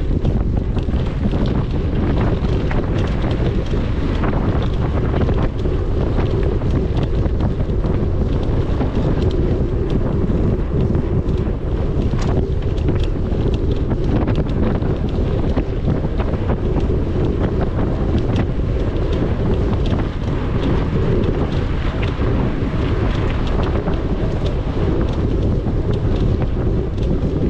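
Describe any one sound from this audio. A bicycle chain and frame rattle over bumps.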